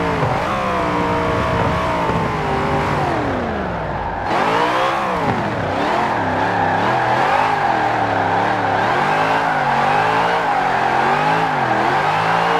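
A car engine roars loudly, its pitch falling as the car slows, then rising and dipping with the throttle.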